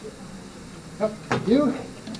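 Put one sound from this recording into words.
A man speaks through a microphone in an echoing room.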